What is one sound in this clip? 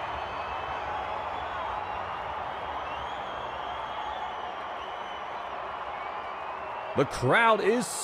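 A stadium crowd roars steadily in the distance.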